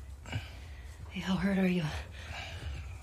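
A young woman asks a question in a low voice.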